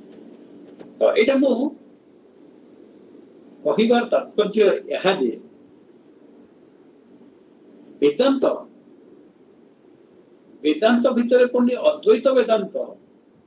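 An elderly man speaks calmly in short bursts over an online call.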